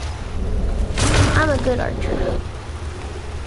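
A bear growls.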